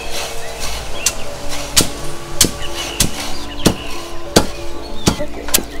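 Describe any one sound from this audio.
A wooden pestle pounds heavily into a wooden mortar with dull thuds.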